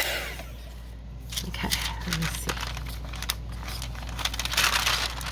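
Tissue paper rustles and crinkles under hands.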